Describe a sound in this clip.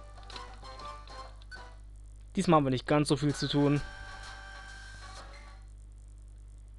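Video game music plays a bright melody, then stops.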